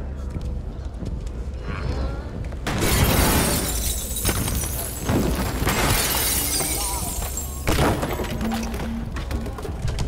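Heavy furniture scrapes and bangs along the floor.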